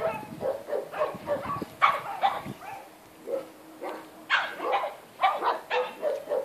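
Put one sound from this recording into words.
Two dogs growl and yip playfully while wrestling.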